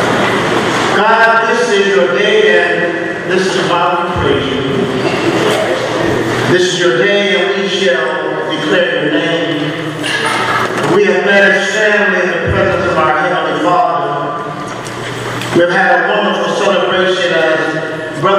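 A crowd of men and women sings together.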